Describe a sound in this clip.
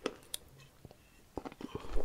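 A woman sips water from a glass.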